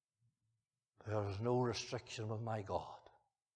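An elderly man speaks loudly and clearly.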